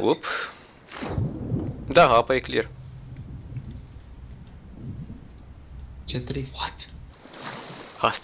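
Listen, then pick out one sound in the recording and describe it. Water rumbles and churns, muffled as if heard underwater.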